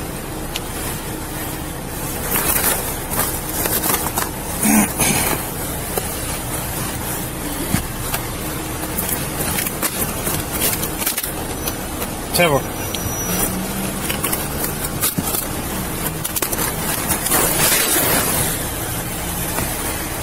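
Fabric rustles and rubs close against a microphone.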